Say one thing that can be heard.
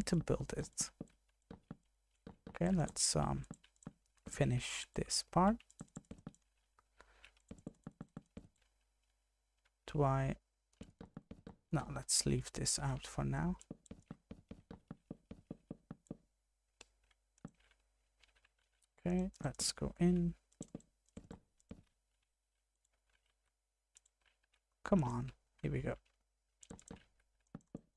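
Wooden blocks are set down with short, soft knocks, again and again.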